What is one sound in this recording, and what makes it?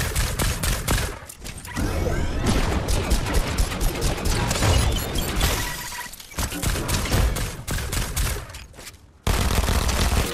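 A rifle fires in quick bursts of shots.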